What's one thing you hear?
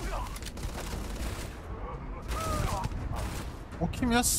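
Rapid gunshots fire in a video game.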